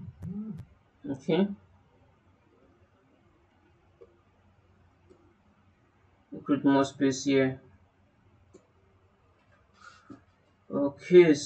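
A man talks calmly and close to a microphone, in short phrases with pauses.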